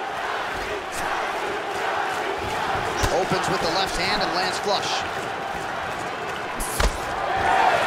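Kicks and punches land with dull thuds.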